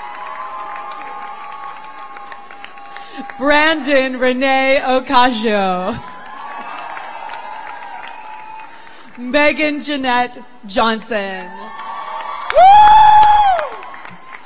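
A small audience claps.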